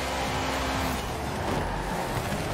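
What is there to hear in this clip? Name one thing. Tyres screech as a car slides through a corner.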